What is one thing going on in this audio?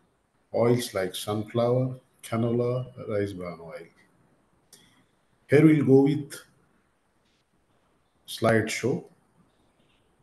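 A man speaks calmly through a microphone, in short phrases with pauses.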